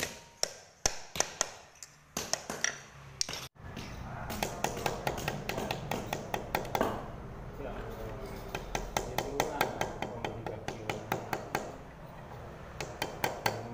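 A knife chops into bamboo on a wooden block.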